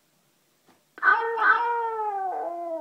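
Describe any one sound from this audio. A talking toy cat speaks in a high, squeaky cartoon voice.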